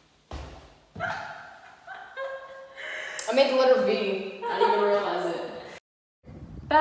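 A young woman laughs loudly nearby.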